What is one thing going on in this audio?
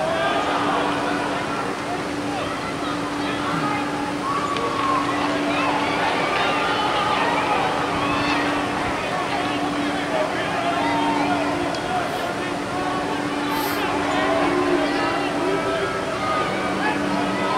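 A crowd of spectators chatters and cheers in an open-air stadium.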